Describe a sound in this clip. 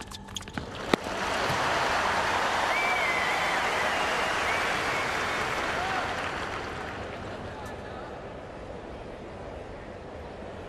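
A large crowd applauds and cheers, then slowly fades.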